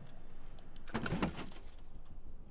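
A plastic case latch clicks open.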